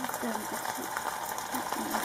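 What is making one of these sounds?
Liquid pours into a pot and splashes.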